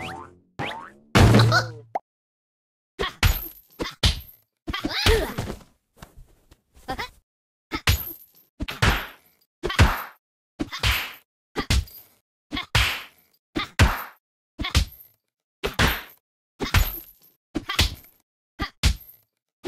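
A cartoon cat grunts and chatters in a high, squeaky voice.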